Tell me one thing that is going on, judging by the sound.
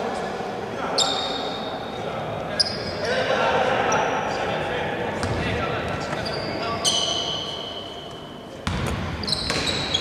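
Sneakers squeak sharply on a court in a large echoing hall.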